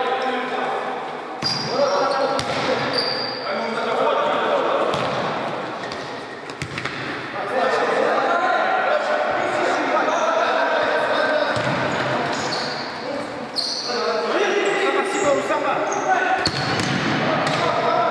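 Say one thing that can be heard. Boys shout to each other across an echoing hall.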